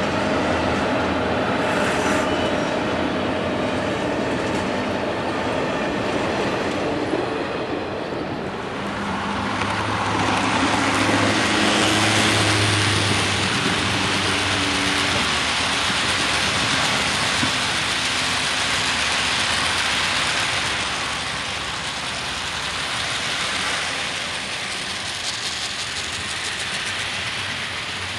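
A model train's wheels rumble and clatter along the track.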